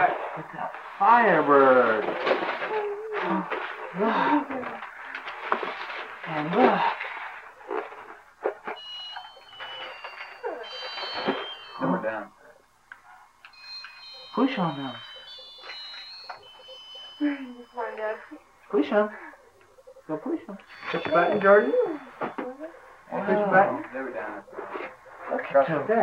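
Adults and young children talk and exclaim excitedly nearby.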